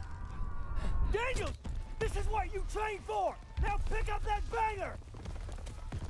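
A young man shouts urgently up close.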